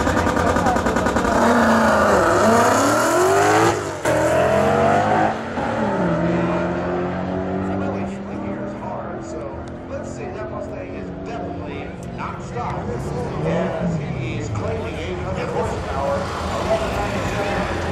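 A car accelerates hard away, its engine roaring and rising in pitch through the gears, then fading into the distance.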